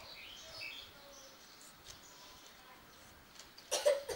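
A woman chews and slurps food close by.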